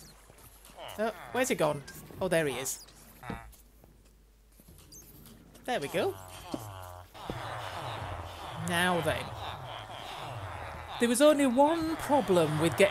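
Villagers in a game grunt and mumble in short nasal murmurs.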